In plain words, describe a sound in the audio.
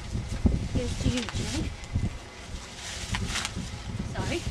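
Dry leaves rustle and crunch.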